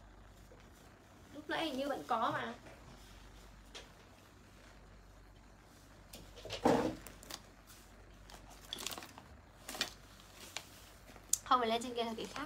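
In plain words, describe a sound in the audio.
Clothing rustles as a young woman changes tops.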